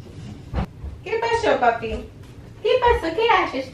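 A woman speaks nearby.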